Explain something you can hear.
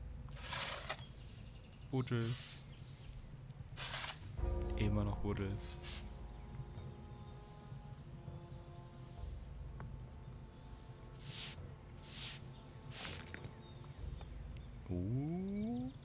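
A shovel digs into soil and gravel again and again.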